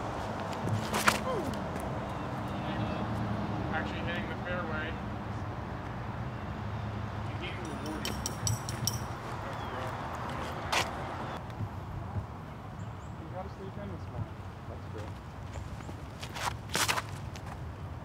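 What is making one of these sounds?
A flying disc is thrown hard with a sharp snap of the release.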